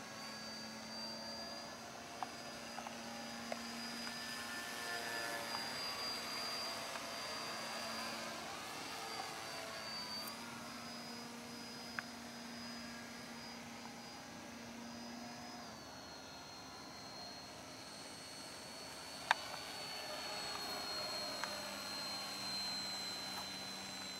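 A radio-controlled model biplane's motor whines overhead, its pitch shifting with the throttle.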